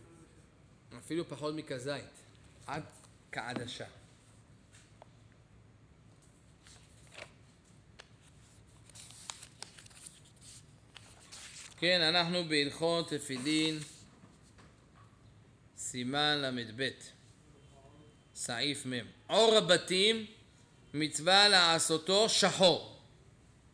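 A middle-aged man speaks into a microphone in bursts, with pauses between phrases.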